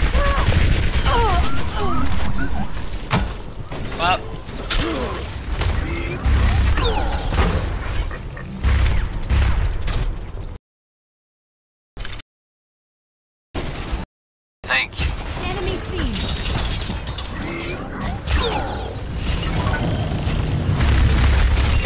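Rapid gunfire rattles close by in bursts.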